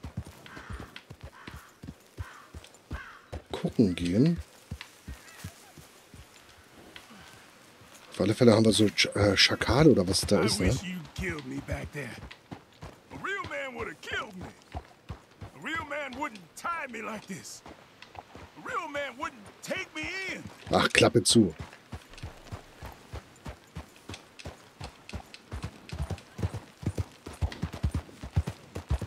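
Horse hooves clop steadily over ground.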